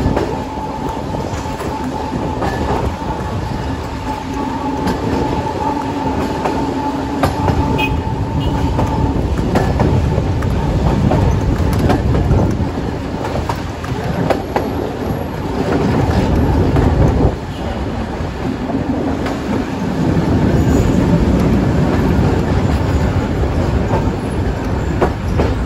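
Wheels clack over rail joints now and then.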